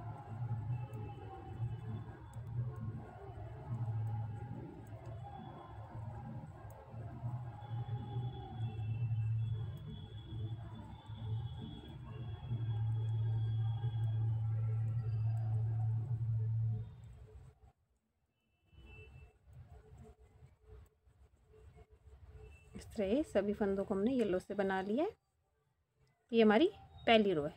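Knitting needles click and tap softly.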